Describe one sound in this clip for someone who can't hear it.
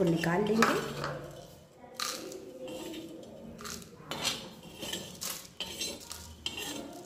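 A metal spatula scrapes and taps against a metal pan.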